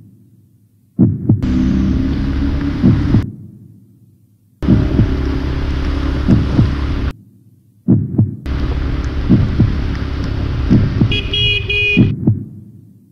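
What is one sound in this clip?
A motorcycle engine roars and revs up close.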